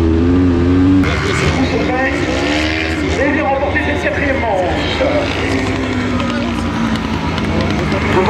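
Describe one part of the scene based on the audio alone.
A racing buggy engine whines in the distance as it passes.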